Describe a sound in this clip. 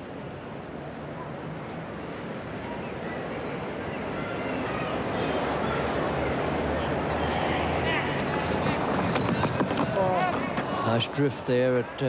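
A crowd murmurs and cheers in an open stadium.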